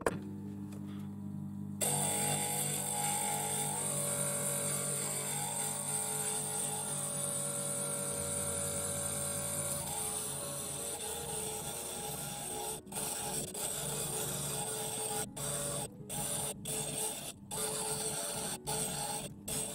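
A small electric machine hums steadily.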